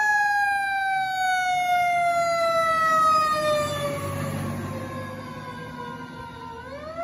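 A fire engine's motor rumbles as the truck pulls past.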